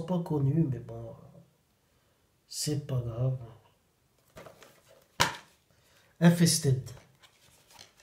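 A young man speaks calmly and close to the microphone, in short bursts.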